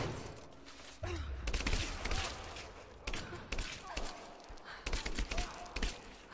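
A man groans and growls.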